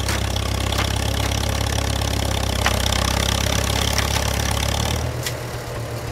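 A tractor engine runs with a low, steady rumble close by, then eases down slightly.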